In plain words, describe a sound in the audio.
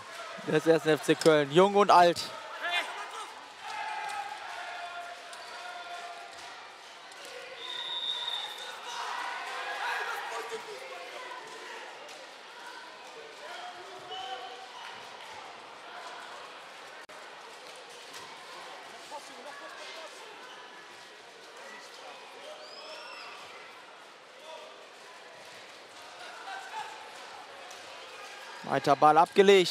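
Sports shoes squeak on a hard court.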